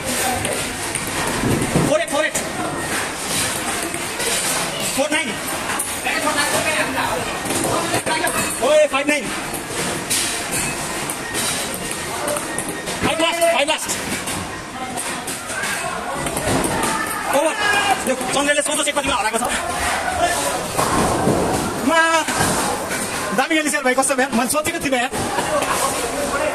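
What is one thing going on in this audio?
A ping pong ball clicks back and forth on a table and paddles.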